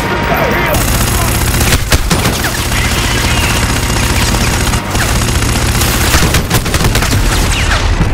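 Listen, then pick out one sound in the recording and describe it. A rifle fires in quick bursts.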